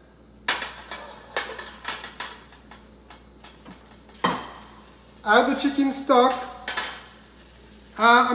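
A metal pan knocks against a wok.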